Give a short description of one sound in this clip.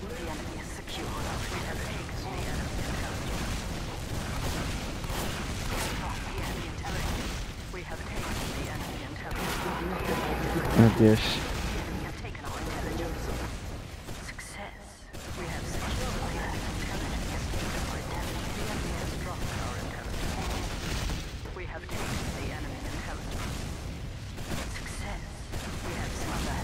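Explosions from a video game boom now and then.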